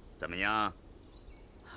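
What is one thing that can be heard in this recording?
A middle-aged man speaks briefly in a low, gruff voice.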